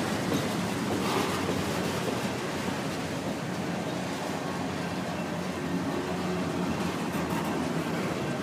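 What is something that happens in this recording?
A freight train rumbles and clatters steadily past close by.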